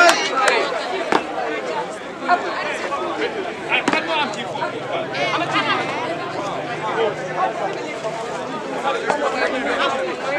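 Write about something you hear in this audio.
Boots stamp heavily on the ground.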